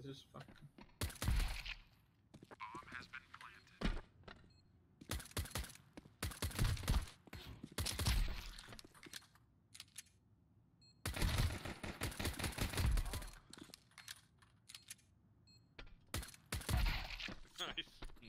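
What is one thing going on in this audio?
A suppressed pistol fires a series of shots.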